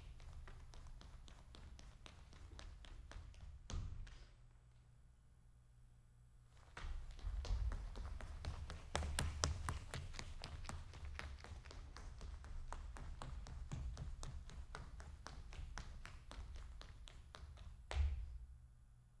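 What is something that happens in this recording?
Shoes tap and stamp quickly on a wooden stage in a hall.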